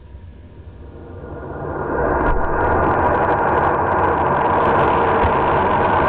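A jet of steam roars out of a nozzle, growing louder.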